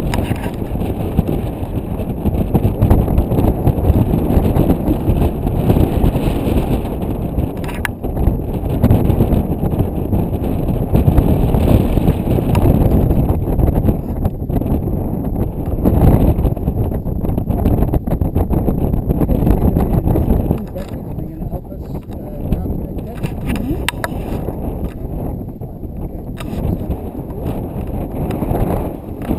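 Strong wind rumbles and buffets against a microphone outdoors.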